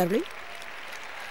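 A woman speaks with animation to an audience through a microphone in a large hall.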